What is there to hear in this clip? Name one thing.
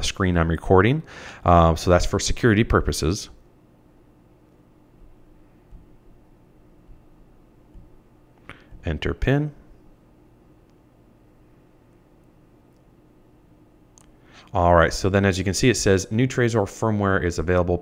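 A man talks calmly and close into a microphone, with pauses.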